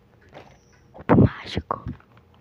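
A puzzle cube is twisted with quick clicking turns close to a microphone.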